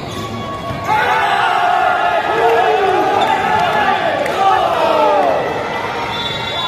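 Young men shout and cheer loudly together.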